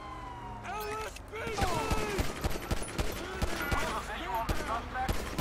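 Police sirens wail and warble nearby.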